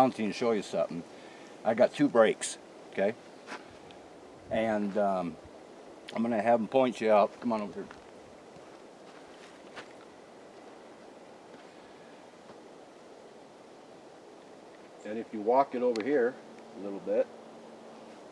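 An older man talks calmly and close by, outdoors.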